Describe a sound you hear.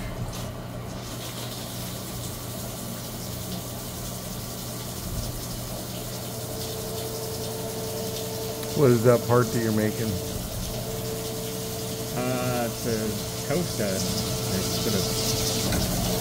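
Coolant sprays and hisses onto metal.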